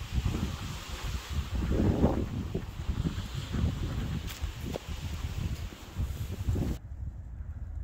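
Footsteps crunch on a sandy path, coming closer.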